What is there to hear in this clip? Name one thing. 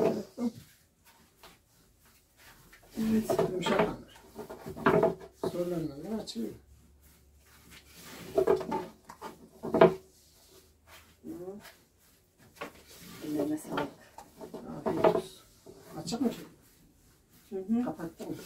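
A second elderly woman answers calmly nearby.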